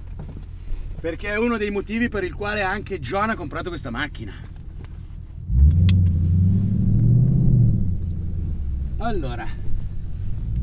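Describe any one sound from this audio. A man talks inside the car.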